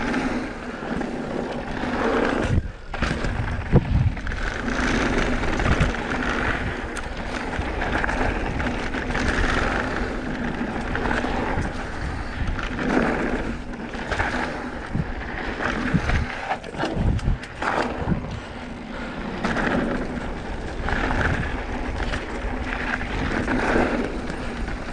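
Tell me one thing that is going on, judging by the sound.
A bicycle frame and chain clatter over bumps.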